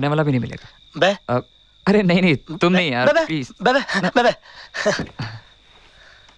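A man speaks with animation up close.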